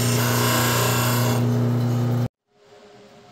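A disc sander grinds loudly against metal.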